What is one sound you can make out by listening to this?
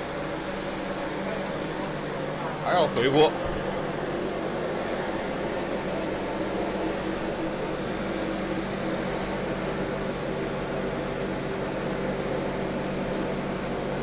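Hot oil sizzles steadily as food fries.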